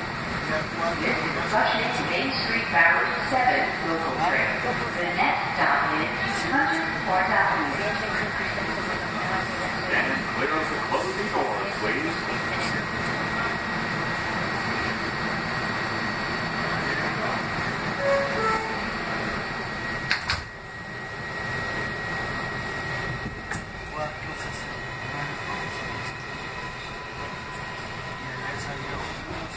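A subway train hums steadily.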